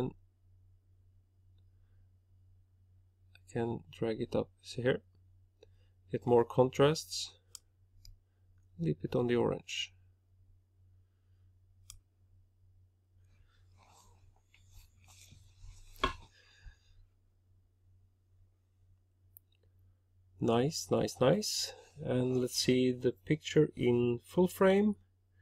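A mouse clicks now and then.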